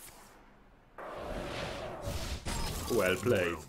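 A magic spell bursts with a crackling blast.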